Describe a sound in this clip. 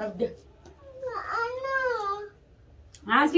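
A young girl speaks in a high voice.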